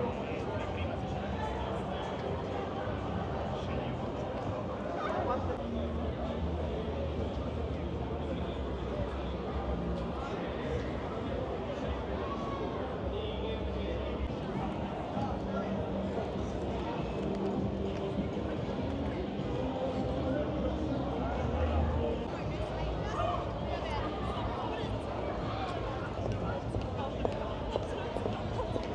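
A crowd chatters outdoors on a busy street at night.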